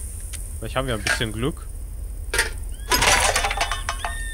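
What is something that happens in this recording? A plastic bin lid knocks open and clatters.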